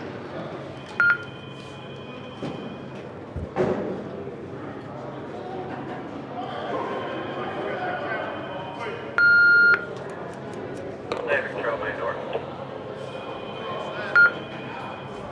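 An electronic tone beeps sharply a few times.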